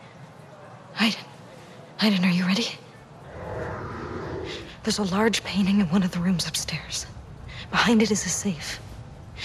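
A young woman speaks quietly and calmly, close by.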